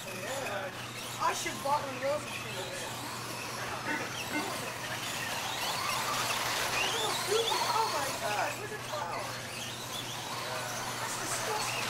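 Small electric motors whine as toy cars race over dirt.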